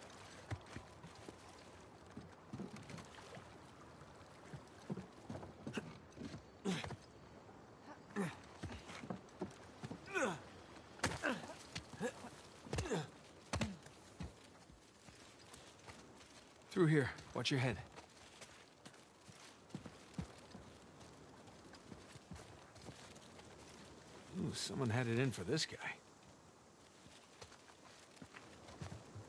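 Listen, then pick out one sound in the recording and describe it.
Footsteps run over grass and wooden boards.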